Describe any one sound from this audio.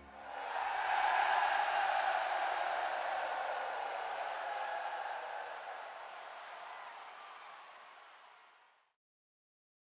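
A large crowd cheers and applauds, then slowly fades to silence.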